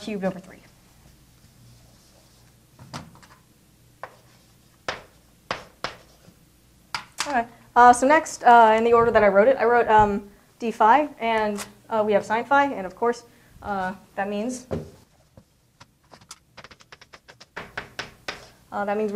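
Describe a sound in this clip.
A young woman speaks calmly, heard close by.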